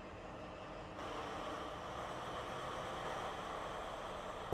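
An electric locomotive hums steadily as it starts to move.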